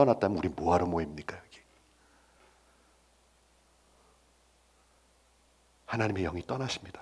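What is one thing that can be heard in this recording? A man speaks with animation into a headset microphone, pausing in between.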